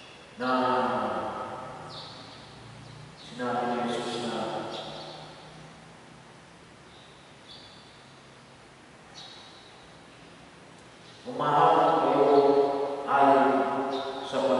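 A man chants in a sung voice through a microphone, echoing in a large hall.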